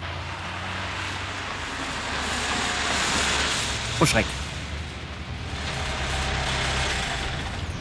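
A car engine hums as a car drives past and pulls in to park.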